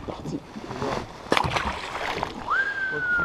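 A fish splashes into the water.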